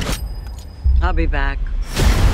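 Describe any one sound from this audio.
An older woman speaks a short line.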